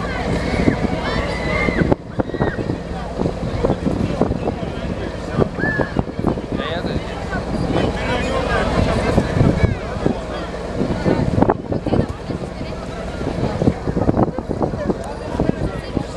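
A crowd of boys and teenagers shout and chatter outdoors.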